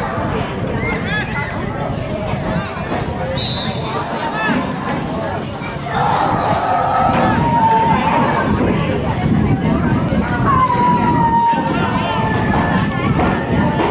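Young girls shout and call to each other across an open field outdoors.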